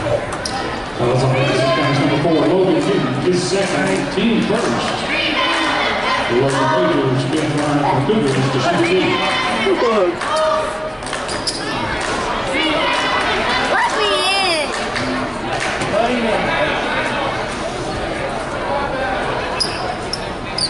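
Men talk nearby in loud voices.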